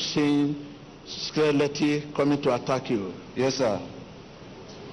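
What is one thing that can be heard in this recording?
A man speaks loudly and with animation through a microphone in an echoing hall.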